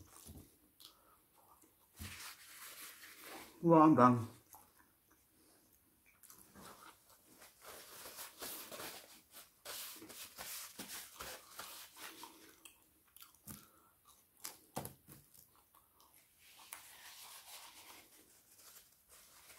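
A man chews food loudly close by.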